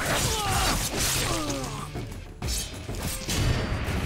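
Metal blades slash and clash in a fight.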